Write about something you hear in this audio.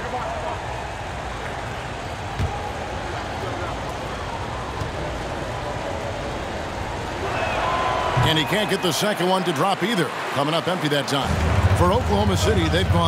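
A large crowd murmurs in an echoing arena.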